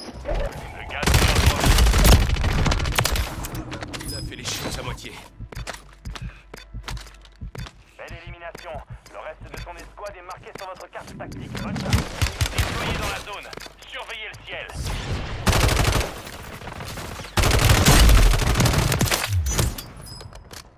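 Rapid gunfire rings out in loud bursts.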